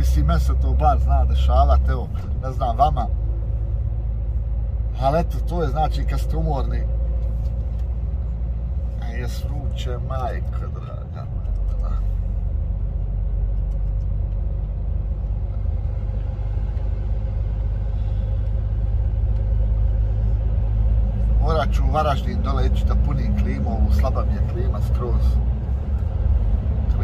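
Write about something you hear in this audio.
A truck engine hums low and steady inside a cab.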